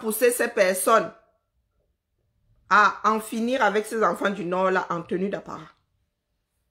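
A woman speaks emphatically and close up.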